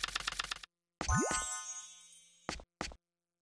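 An electronic tone sweeps quickly upward with a chime.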